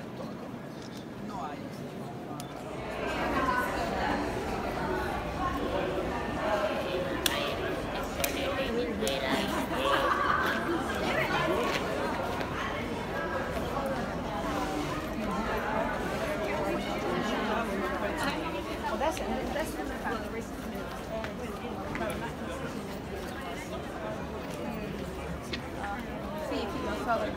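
A crowd of people chatters all around in a large open space.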